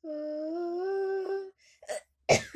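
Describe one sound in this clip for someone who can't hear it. A child sings a drawn-out note close to the microphone.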